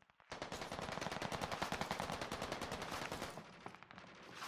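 Quick footsteps run on a hard surface.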